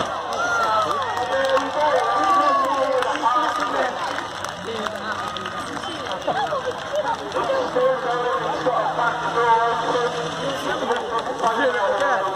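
A race car engine runs and revs at a distance.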